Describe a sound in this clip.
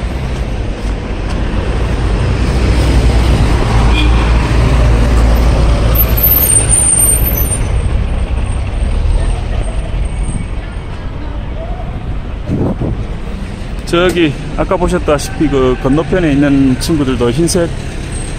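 Traffic rumbles along a nearby street.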